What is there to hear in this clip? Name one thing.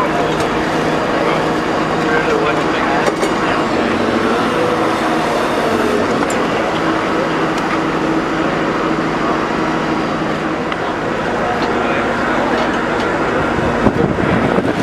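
A diesel engine hums steadily nearby.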